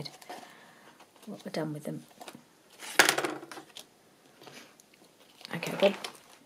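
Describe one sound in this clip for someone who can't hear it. Stiff paper pages rustle and crinkle as hands handle them.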